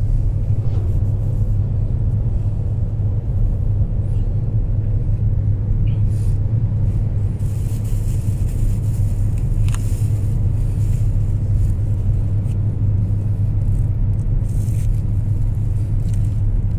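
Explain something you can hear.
A car engine hums steadily inside a moving car.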